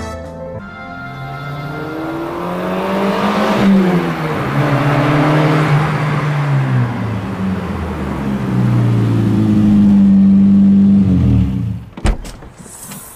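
A sports car engine roars as the car approaches and slows to a stop.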